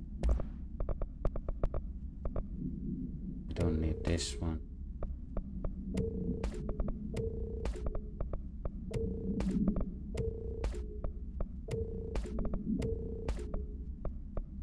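Short menu clicks tick repeatedly.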